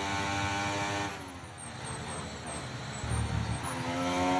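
A racing car engine drops in pitch as the car slows for a corner.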